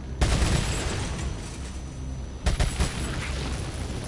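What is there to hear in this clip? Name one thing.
Gunshots ring out sharply several times, echoing.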